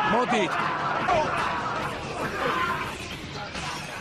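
Young men shout and jeer loudly in an echoing alley.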